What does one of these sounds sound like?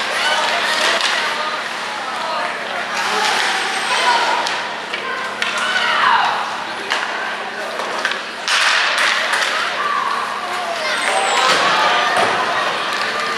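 Ice skates scrape and carve across the ice in an echoing arena.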